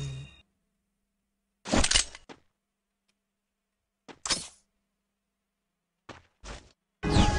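Short clattering bursts of gear and weapons being switched sound in quick succession.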